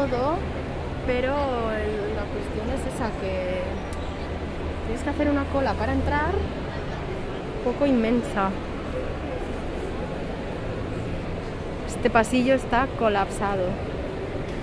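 A young woman talks with animation nearby.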